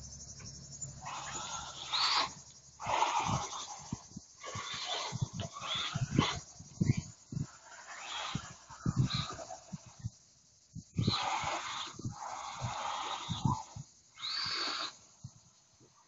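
Small electric motors of toy cars whine in bursts as they speed about outdoors.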